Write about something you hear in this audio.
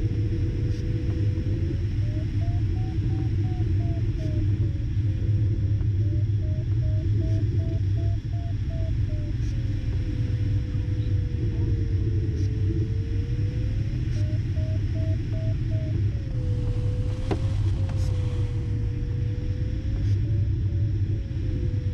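Air rushes steadily over a glider's canopy.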